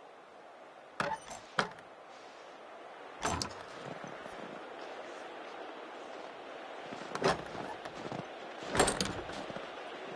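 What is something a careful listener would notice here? A heavy metal lever clanks as it is worked.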